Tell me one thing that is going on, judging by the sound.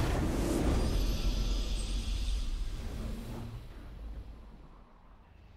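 A triumphant game fanfare rings out and fades.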